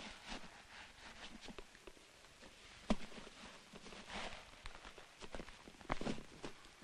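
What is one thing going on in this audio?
Dry grass rustles as it is stuffed into a leather boot.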